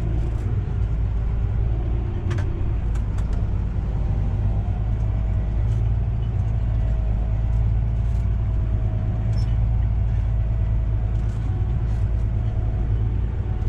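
A tractor cab rattles and knocks over bumpy ground.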